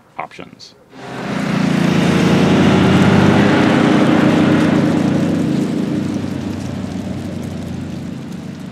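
Several motorcycle engines rumble loudly as they ride off and slowly fade into the distance.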